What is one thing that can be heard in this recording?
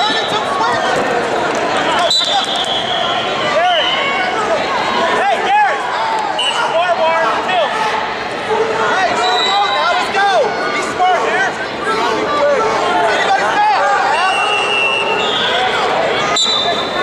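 Sneakers squeak sharply on a wrestling mat, again and again.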